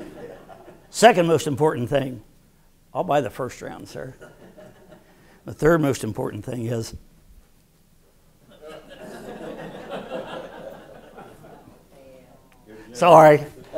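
An elderly man speaks into a microphone in a lively, joking way.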